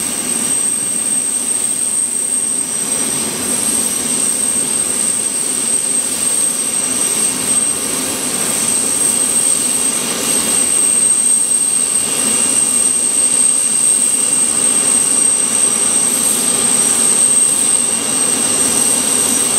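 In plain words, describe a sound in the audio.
A jet engine whines steadily nearby.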